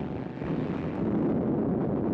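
Heavy naval guns fire with a deep boom.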